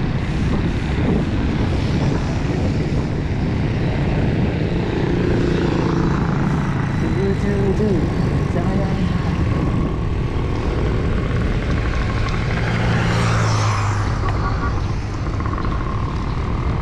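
Wind rushes loudly past a moving bicycle.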